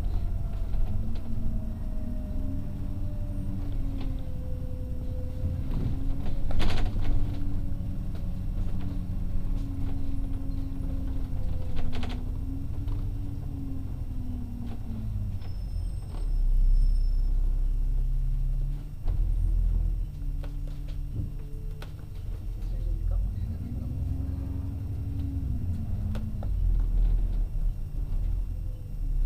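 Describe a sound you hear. Wind rumbles against the bus.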